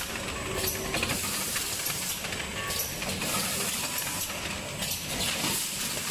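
A packaging machine hums and clatters steadily.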